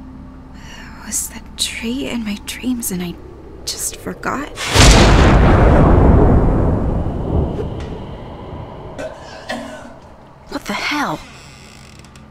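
A young woman talks quietly into a close microphone.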